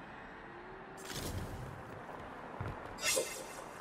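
Stone shatters with a loud crash and debris scatters.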